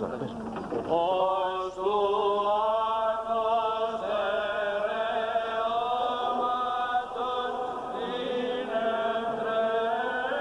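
Men chant together in a slow, drawn-out melody.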